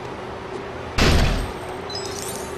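A pile of junk bursts apart with a loud crash.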